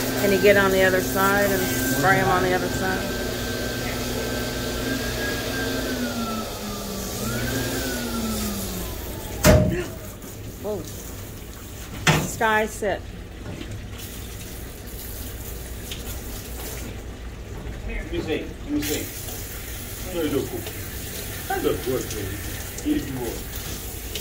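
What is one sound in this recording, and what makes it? Water sprays from a hose nozzle.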